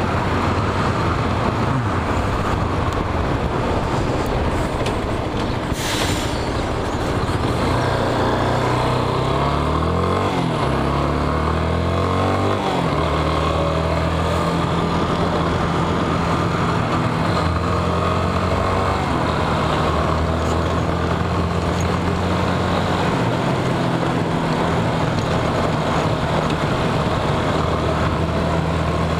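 Wind rushes steadily past the rider.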